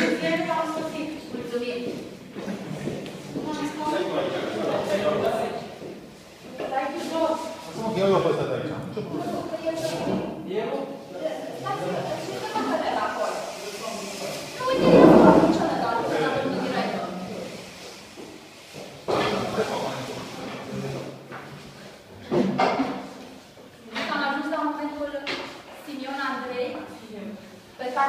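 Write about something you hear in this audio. A middle-aged woman speaks firmly nearby.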